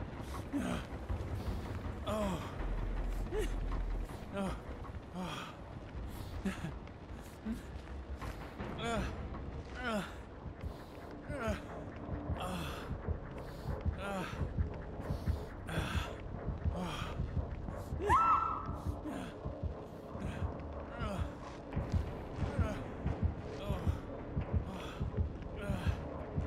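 Footsteps hurry across a wooden floor.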